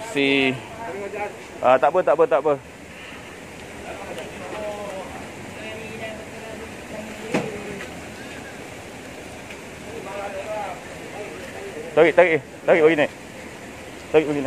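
Men talk and shout loudly nearby, outdoors.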